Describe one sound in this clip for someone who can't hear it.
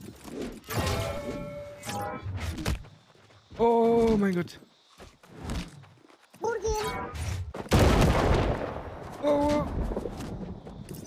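Swords clash and strike in a game fight.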